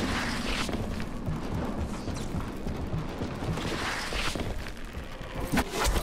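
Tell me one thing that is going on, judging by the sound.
Footsteps thud across a metal roof.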